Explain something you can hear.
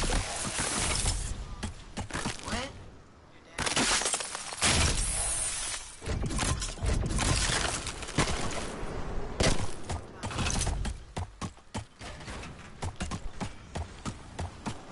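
A boy talks with animation into a microphone.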